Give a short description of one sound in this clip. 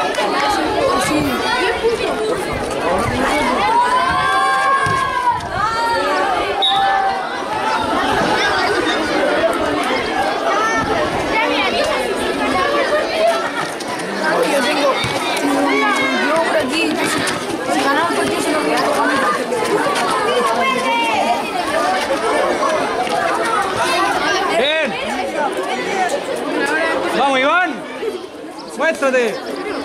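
A crowd of children cheers and shouts loudly outdoors.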